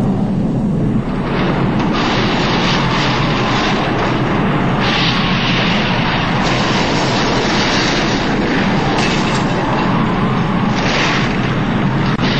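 A powerful blast of wind howls and tears past.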